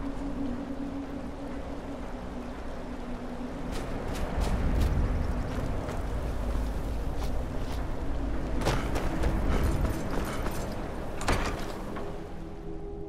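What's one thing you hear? Wind howls steadily outdoors.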